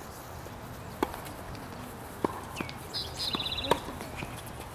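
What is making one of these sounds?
Tennis balls are struck with rackets and bounce with sharp pops outdoors.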